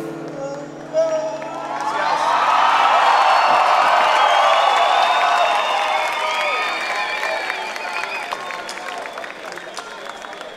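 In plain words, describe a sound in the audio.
A large crowd cheers and whistles loudly in a big hall.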